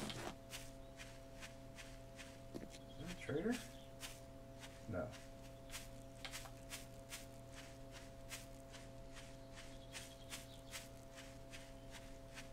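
Footsteps rustle steadily through grass.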